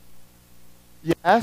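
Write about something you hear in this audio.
A man speaks loudly.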